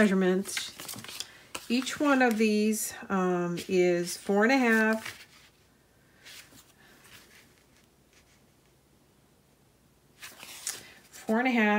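Stiff paper rustles and taps as hands handle it.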